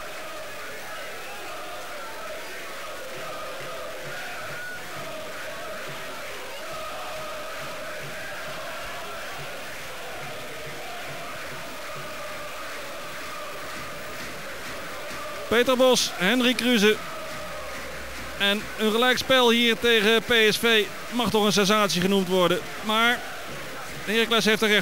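A large stadium crowd murmurs and chants steadily in the distance.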